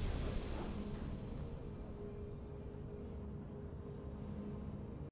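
Triumphant victory music plays with a sustained, shimmering chord.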